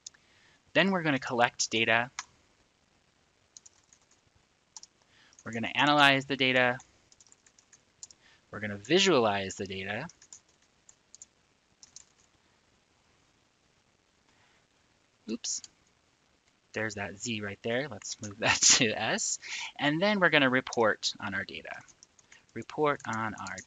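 A middle-aged man speaks calmly and close into a microphone, pausing between phrases.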